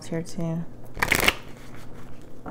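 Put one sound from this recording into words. Cards tap and rustle under a hand.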